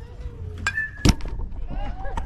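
A ball smacks into a catcher's mitt with a sharp pop.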